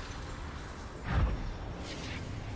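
A magic blast bursts with a rushing whoosh.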